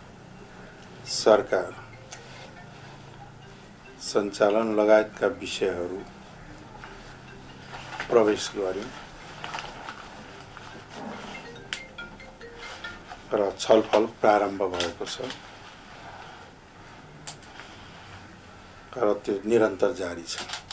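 A middle-aged man speaks calmly and slowly into a close microphone, with long pauses.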